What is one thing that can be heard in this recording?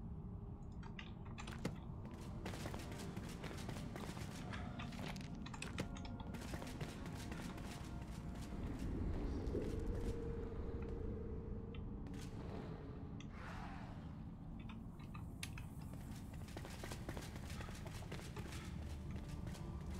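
Armoured footsteps thud on stone floors.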